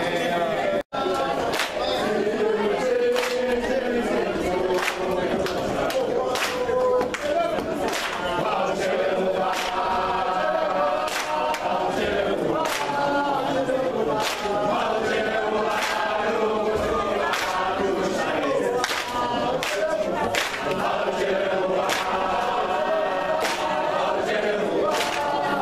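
A crowd of young men and women sings together loudly in an echoing hall.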